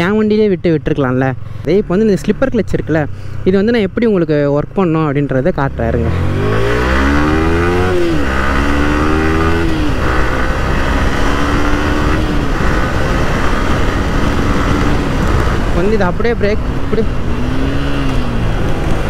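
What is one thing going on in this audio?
A motorcycle engine revs and roars, its pitch rising and falling as it speeds up.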